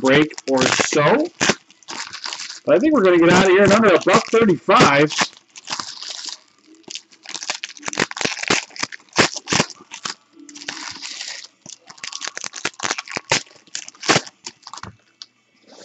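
Foil wrappers crinkle and tear as packs are ripped open.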